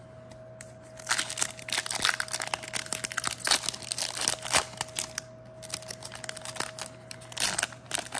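A foil wrapper crinkles and tears as hands rip it open.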